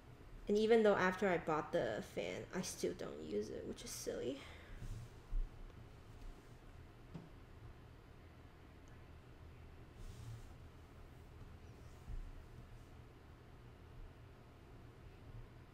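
A brush dabs and strokes softly on paper.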